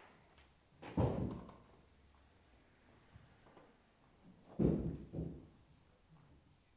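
A piano sounds a few notes that ring and fade.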